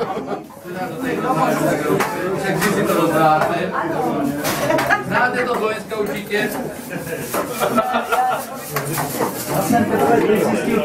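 A crowd of men and women chatter loudly nearby in a busy, echoing room.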